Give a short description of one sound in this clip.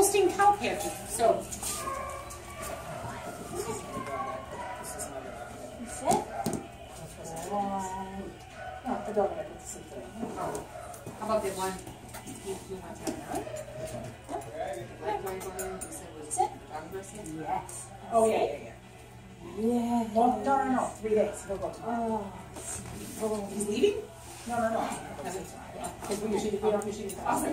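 A dog's claws tap on a hard floor.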